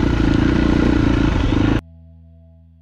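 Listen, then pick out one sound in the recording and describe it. A dirt bike engine roars loudly up close, then cuts off abruptly.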